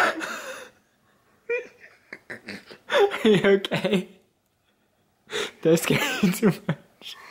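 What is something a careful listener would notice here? A young girl sobs and wails loudly close by.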